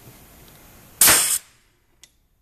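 A heavy tool thumps down on a hard surface.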